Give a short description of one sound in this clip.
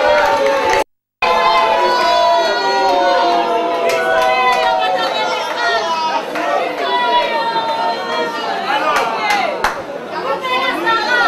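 Loud music with singing plays through loudspeakers in a large room.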